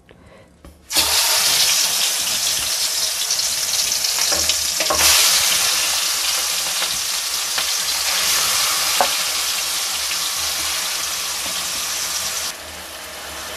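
Oil sizzles loudly as pieces of food fry in a pan.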